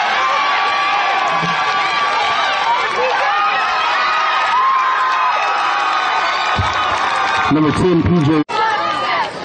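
A crowd cheers loudly from a distance.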